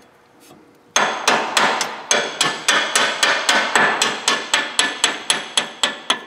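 A ratchet wrench clicks in quick, even strokes.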